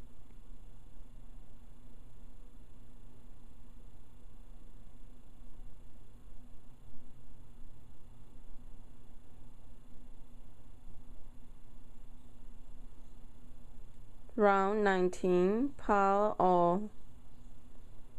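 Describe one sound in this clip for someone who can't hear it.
Metal knitting needles click and tap softly against each other.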